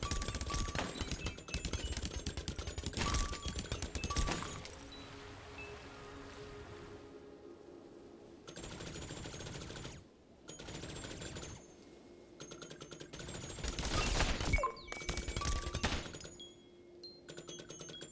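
Video game music plays with a steady beat.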